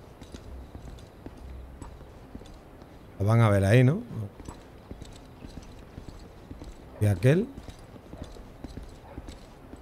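Footsteps patter softly on hard ground.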